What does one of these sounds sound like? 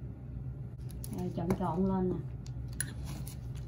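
A metal spoon scrapes and stirs through flour in a bowl.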